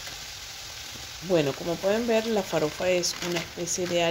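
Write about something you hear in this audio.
Dry grains pour into a pot with a soft rustle.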